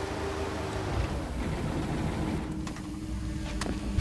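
A van door opens.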